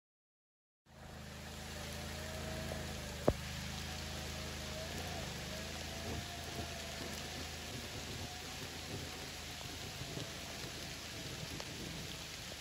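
An all-terrain vehicle engine hums steadily in the distance.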